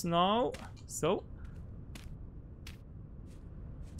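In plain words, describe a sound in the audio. A block of earth is set down with a soft thud.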